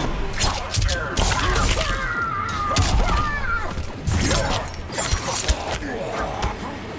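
Fighters grunt and cry out with effort.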